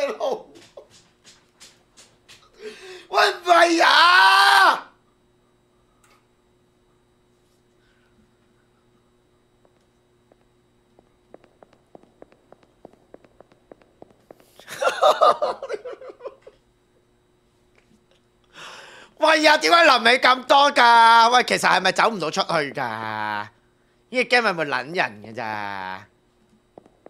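A young man talks animatedly and laughs into a close microphone.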